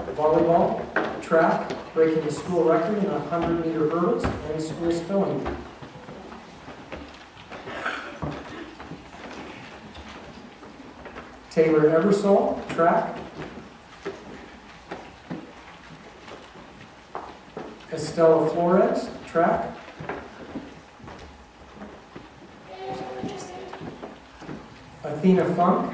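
A man speaks into a microphone over a loudspeaker in an echoing hall, reading out in short bursts.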